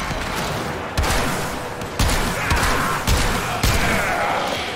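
Guns fire in loud, sharp bursts.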